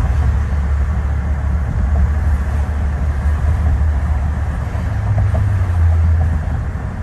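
A car's engine and tyres rumble steadily at highway speed, heard from inside the car.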